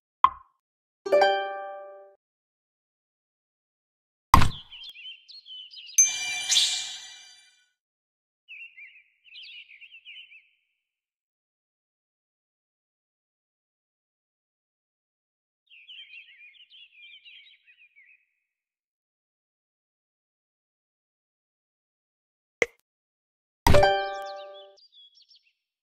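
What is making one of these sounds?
A bright game chime rings out as a tile snaps into place.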